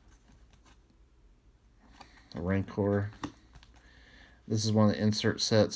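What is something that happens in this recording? Trading cards slide and rustle against each other.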